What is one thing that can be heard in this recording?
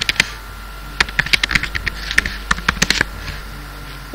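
A keyboard clicks with quick typing.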